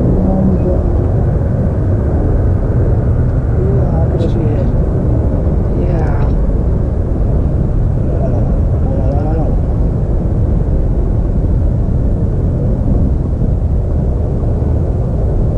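A jet engine roars steadily overhead.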